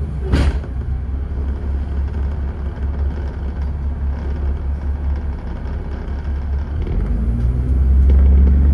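A bus engine rumbles steadily as the bus drives along.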